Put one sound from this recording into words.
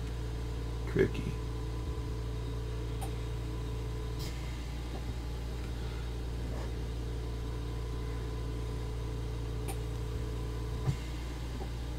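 Plastic model parts click and tap softly as they are handled.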